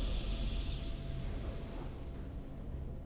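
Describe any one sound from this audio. A short triumphant fanfare plays.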